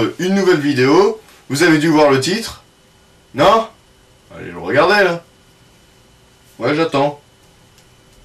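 A young man speaks calmly and close by, in short bursts with pauses.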